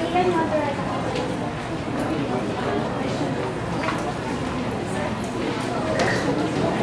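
A crowd of young people chatters in the background.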